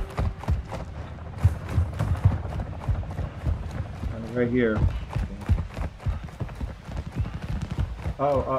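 Footsteps thud quickly on pavement.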